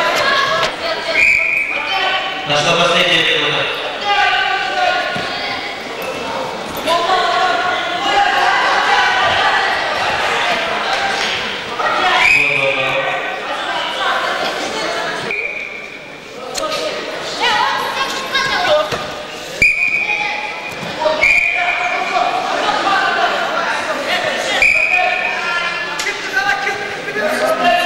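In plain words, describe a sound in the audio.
A crowd of boys chatters nearby in a large echoing hall.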